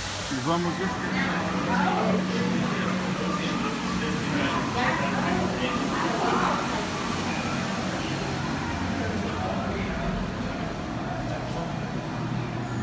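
A crowd of people murmurs and chats nearby indoors.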